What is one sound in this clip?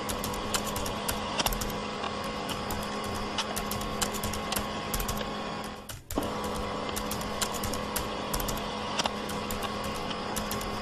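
Keys clack rapidly on a computer keyboard.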